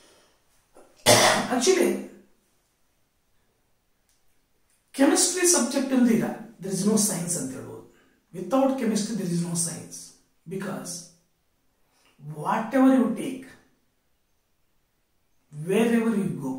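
A man speaks clearly and with emphasis, close by, in short bursts.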